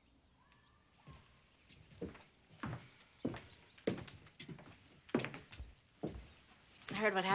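Footsteps walk across a wooden floor.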